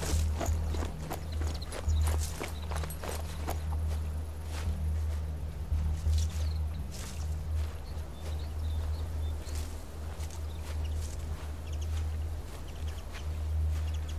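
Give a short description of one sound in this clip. Footsteps crunch quickly through dry grass.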